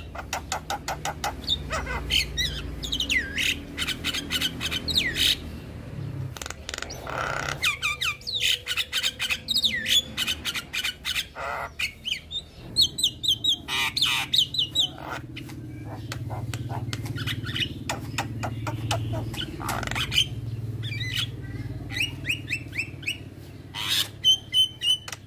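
A caged bird sings close by with loud, varied whistles, chirps and rapid clicking calls.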